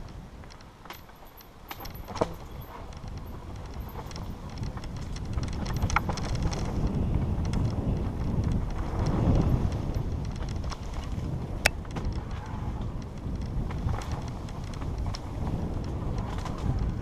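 Tyres roll and crunch over a dirt trail.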